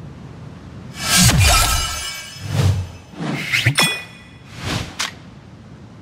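A game chimes with a bright fanfare as an item is collected.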